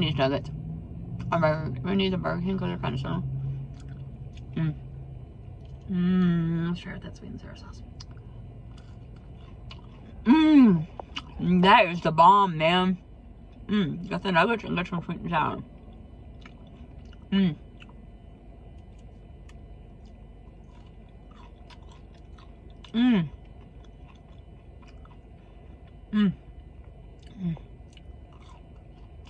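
A woman chews crunchy fried food close to the microphone.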